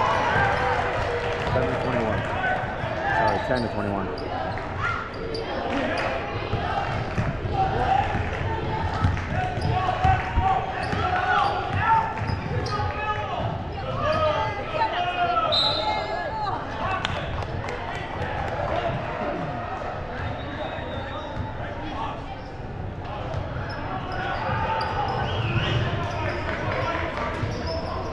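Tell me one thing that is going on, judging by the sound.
Spectators chatter and call out across a large echoing gym.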